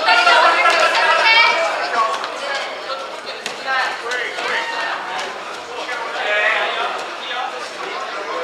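Several men shout encouragement nearby in an echoing hall.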